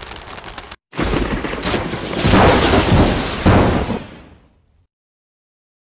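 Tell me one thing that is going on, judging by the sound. Thunder cracks loudly and rumbles away.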